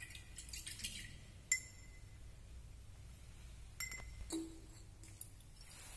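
Glassware clinks lightly as it is handled.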